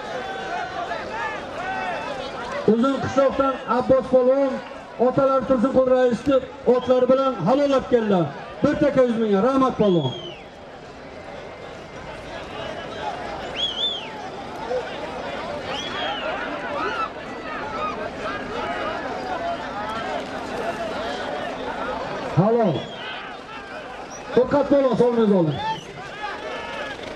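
A large crowd murmurs and calls out in the open air.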